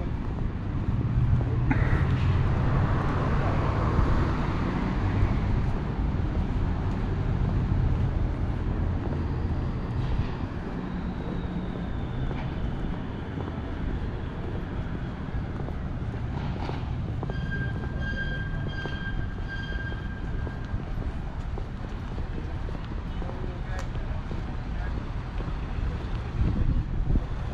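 Wind blows steadily outdoors, rumbling low.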